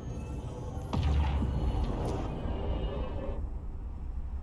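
A spaceship's engine swells into a deep rushing whoosh as it leaps to warp.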